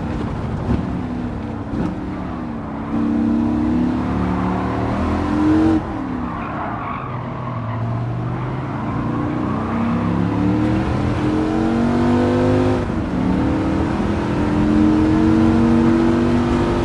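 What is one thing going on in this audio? A racing car engine roars, its pitch climbing and dropping with each gear change.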